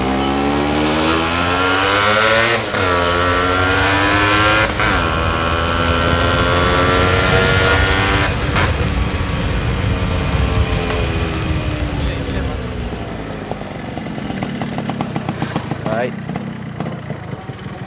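A motorcycle engine revs up and shifts gears repeatedly, then slows to a sputtering idle.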